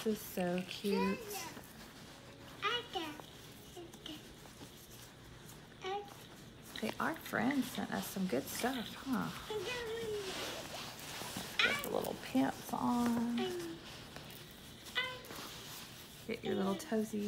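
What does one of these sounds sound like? Soft fabric rustles as tiny clothes are pulled on.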